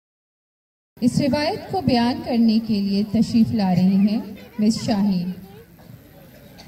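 Young women sing a devotional chant together through a microphone.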